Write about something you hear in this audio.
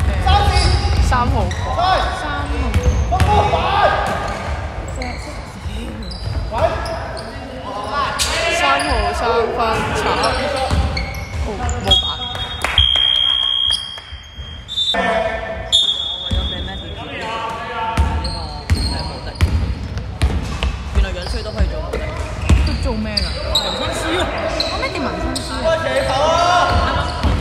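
Sneakers squeak on a hardwood floor in a large echoing hall.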